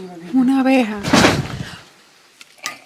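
A young woman exclaims loudly with surprise.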